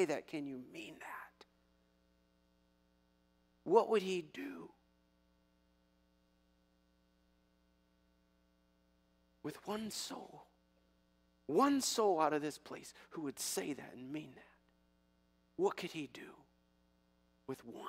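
A middle-aged man speaks with animation through a microphone, pausing often.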